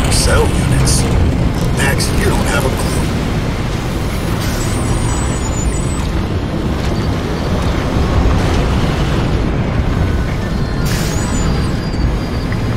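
A vehicle engine rumbles low and steady as it drives.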